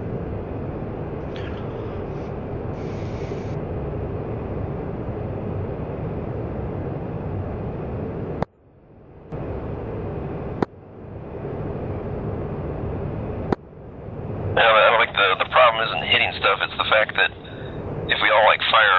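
A jet engine rumbles steadily.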